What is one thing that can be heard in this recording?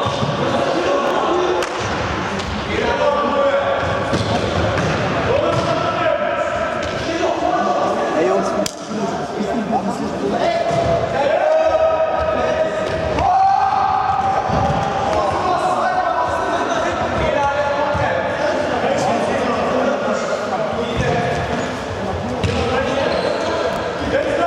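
A ball thumps as it is kicked on a hard floor.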